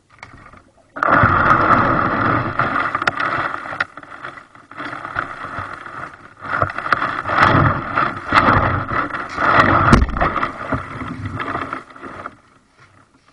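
A kayak hull scrapes and grinds over gravel and stones.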